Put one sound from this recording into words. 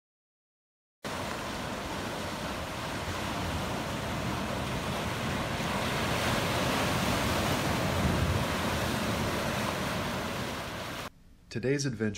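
Waves wash and break on a shore.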